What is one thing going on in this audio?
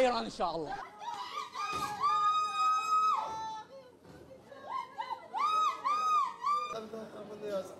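Women wail and cry out in high, drawn-out voices.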